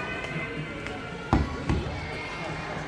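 A hand thumps on a large drum skin.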